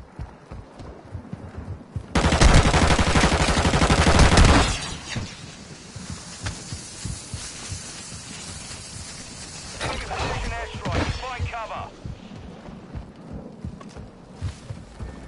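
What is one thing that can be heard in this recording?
Footsteps crunch quickly on sand and gravel.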